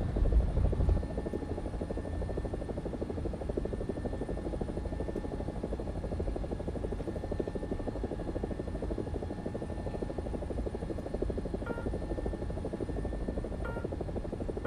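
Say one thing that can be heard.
A muffled helicopter engine drones steadily in the distance.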